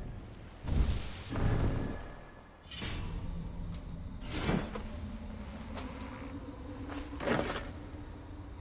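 Soft whooshing interface sounds play as menu pages change.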